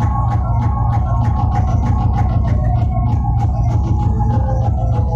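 Loud dance music plays with a heavy, thumping beat.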